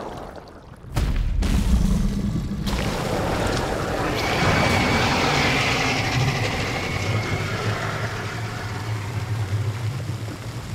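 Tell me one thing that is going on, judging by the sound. A huge monster rumbles and crashes around.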